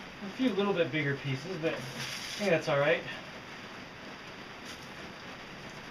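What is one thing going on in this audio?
Dry grain rustles and pours as hands scoop through it in a bucket.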